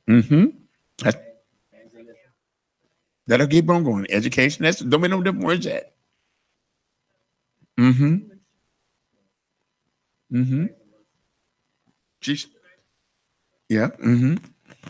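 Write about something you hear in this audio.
A man speaks into a microphone in short bursts, with long pauses.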